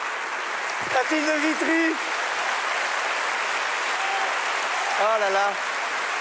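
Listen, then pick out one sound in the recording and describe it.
A woman speaks briefly over applause.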